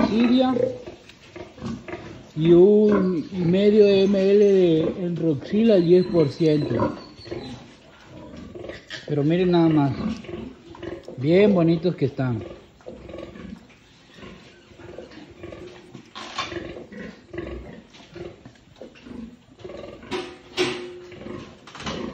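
A sow grunts softly and rhythmically.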